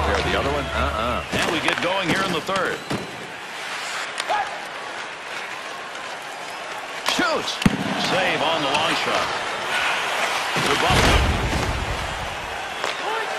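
Skates scrape across ice.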